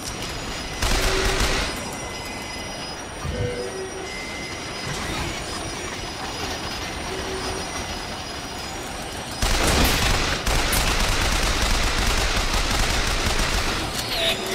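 A machine gun fires in bursts.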